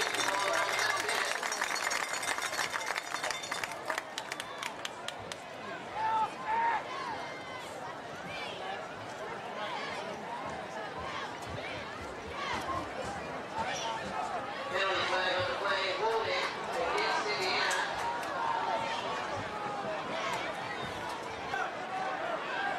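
A crowd chatters and cheers outdoors in a large open stadium.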